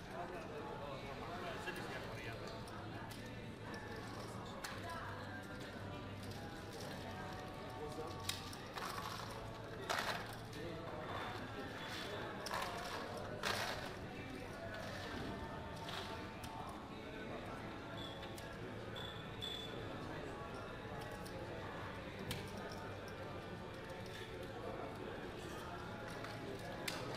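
Casino chips click and clatter as they are stacked and pushed across a table.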